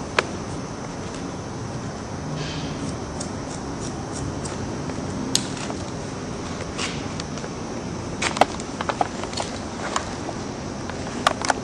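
Scissors snip through hair in short crisp cuts.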